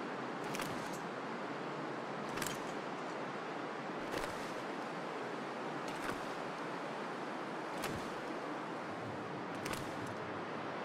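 Footsteps crunch slowly on snow and ice.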